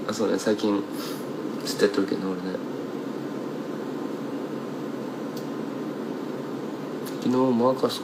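A young man speaks softly and casually, close to a microphone.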